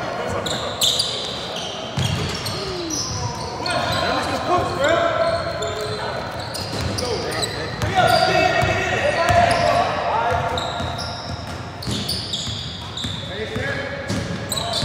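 Young men shout and call out in an echoing gym.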